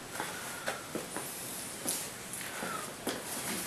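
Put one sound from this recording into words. A hand knocks and handles small objects on a table.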